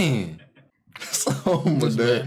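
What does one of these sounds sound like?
A man talks and chuckles close to a microphone.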